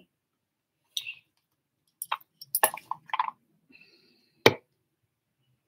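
Small objects click and knock nearby.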